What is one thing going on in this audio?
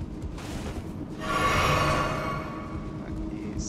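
A warrior lets out a loud war cry.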